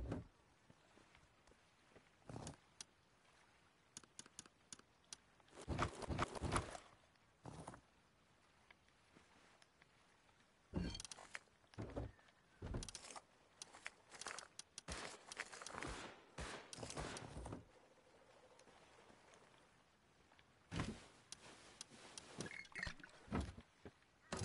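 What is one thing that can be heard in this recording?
Short game menu clicks and item rustles sound now and then.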